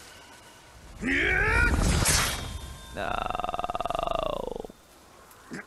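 A man screams loudly.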